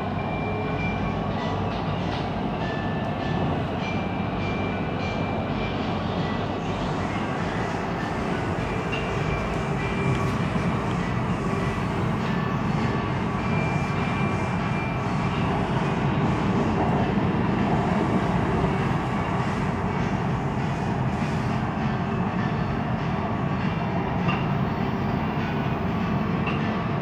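A train rumbles steadily along its track, heard from inside a carriage.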